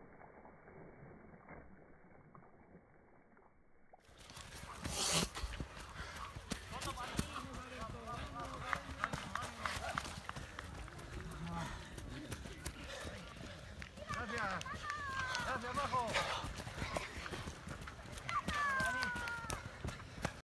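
Runners' feet thud on grass.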